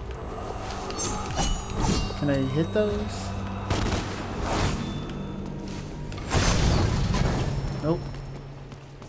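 A sword slashes and clangs in quick blows.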